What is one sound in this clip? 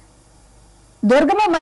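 A woman speaks clearly into a microphone.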